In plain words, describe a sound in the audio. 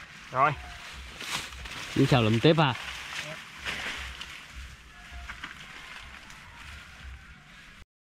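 Dry leaves and grass rustle as a man pushes through them.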